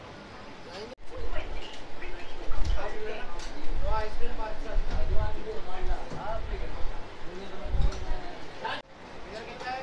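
Men talk nearby in a busy room.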